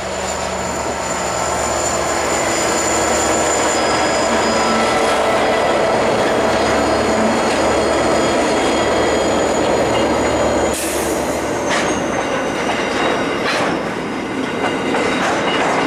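Steel wheels of loaded coal wagons clatter and squeal on the rails.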